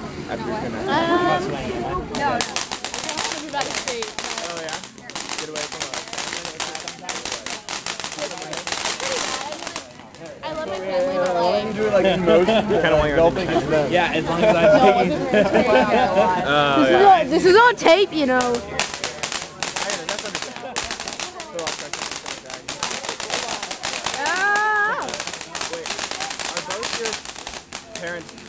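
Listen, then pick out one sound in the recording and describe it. Firework sparks crackle and pop rapidly.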